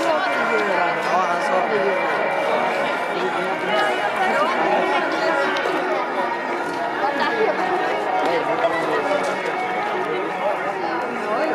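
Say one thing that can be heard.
A crowd of adults and children chatter all around outdoors.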